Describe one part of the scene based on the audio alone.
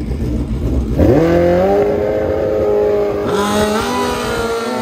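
A motorcycle engine revs up sharply, rising in pitch.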